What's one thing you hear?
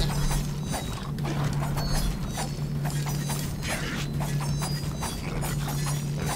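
A blade swishes and strikes flesh in quick blows.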